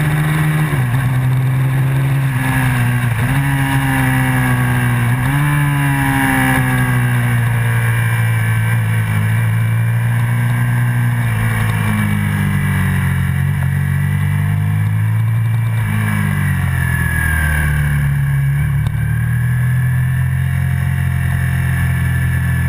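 A motorcycle engine roars loudly up close, its pitch rising and falling as it shifts gears.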